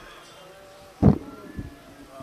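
A thump sounds through a loudspeaker.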